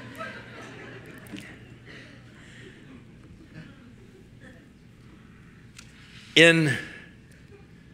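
An elderly man laughs heartily.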